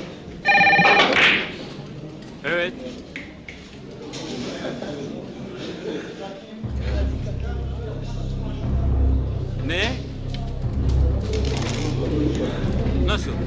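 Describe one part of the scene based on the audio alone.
A middle-aged man talks into a telephone with animation.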